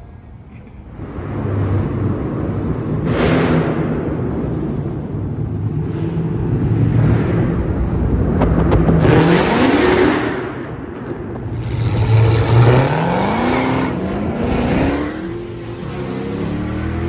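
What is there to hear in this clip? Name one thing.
A car engine roars and revs loudly, echoing in a large concrete space.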